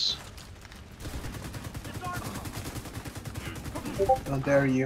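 A machine gun fires in a long rapid burst.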